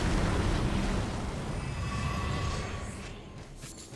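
A magic blast bursts with a crackling whoosh.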